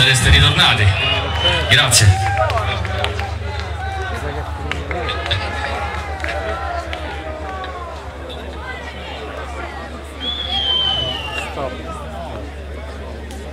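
A band plays loud amplified music with a steady bass beat.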